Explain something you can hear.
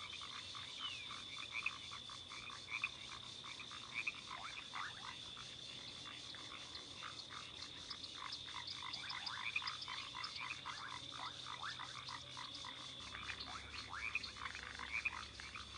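Small feet patter quickly over the ground.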